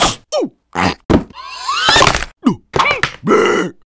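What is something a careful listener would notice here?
A metal can clatters onto a wooden floor.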